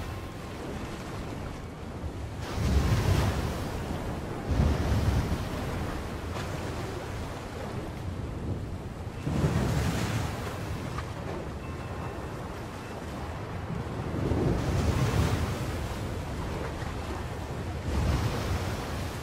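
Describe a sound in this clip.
Strong wind roars outdoors.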